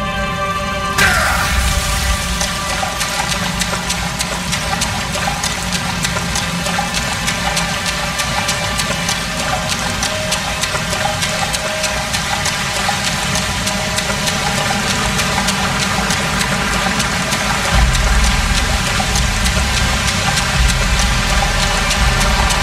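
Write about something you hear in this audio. Footsteps splash while wading through shallow water.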